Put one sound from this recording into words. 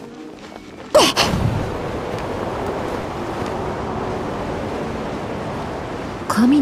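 Wind rushes steadily past while gliding.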